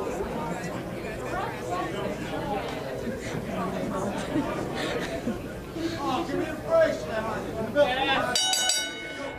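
A large crowd chatters and shouts in a busy, echoing hall.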